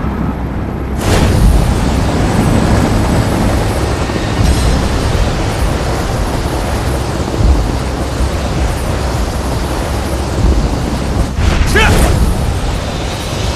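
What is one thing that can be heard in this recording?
Wind rushes loudly past a falling man.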